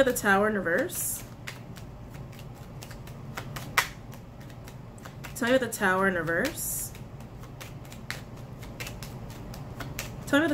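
Plastic packaging crinkles and clicks as it is handled.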